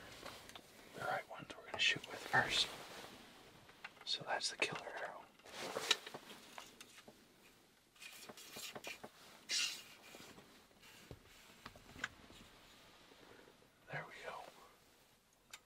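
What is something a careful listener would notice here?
A man whispers quietly close by.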